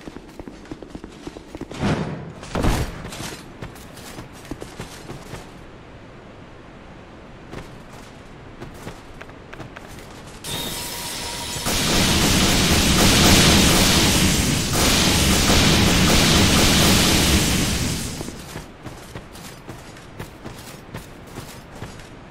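Footsteps thud on stone at a steady run.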